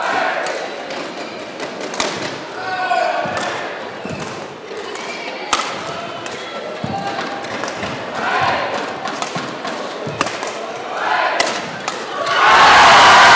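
Rackets strike a shuttlecock back and forth with sharp pops.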